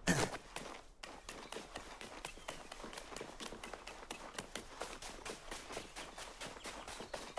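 Footsteps patter quickly over soft ground.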